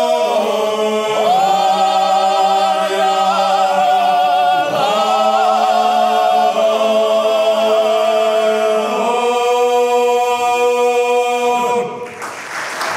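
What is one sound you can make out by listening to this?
A male choir sings in close harmony in a large hall.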